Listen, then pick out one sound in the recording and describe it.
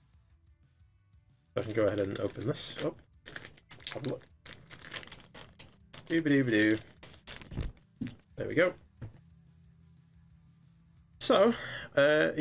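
Hands handle and slide open a cardboard box.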